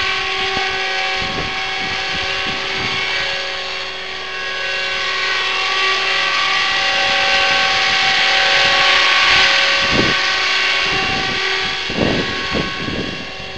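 A small model helicopter's motor whines steadily with a high buzzing hum.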